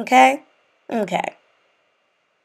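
A young woman speaks briefly and calmly, close to the microphone.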